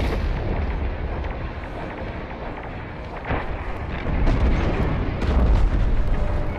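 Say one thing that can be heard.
Explosions boom and rumble in a space battle.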